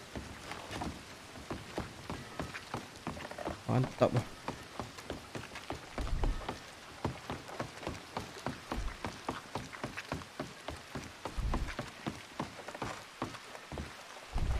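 Boots run quickly across wooden boards.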